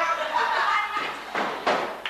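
Music plays from a loudspeaker.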